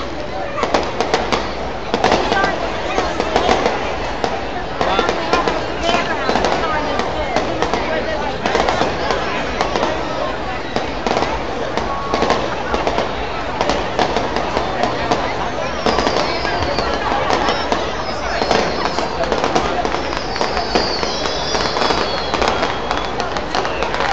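Fireworks burst and crackle overhead outdoors.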